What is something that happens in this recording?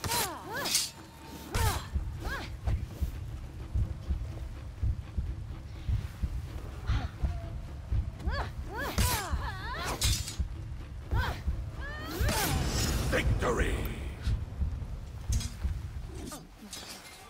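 Heavy thuds and impacts pound low and hard.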